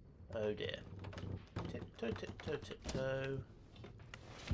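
A wooden window scrapes and knocks as it is pushed open.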